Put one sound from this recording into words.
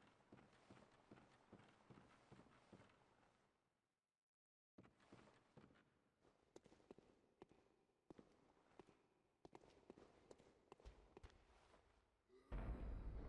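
Footsteps clatter on wooden rungs and stone.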